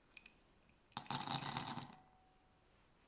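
Chocolate chips clatter into a glass bowl.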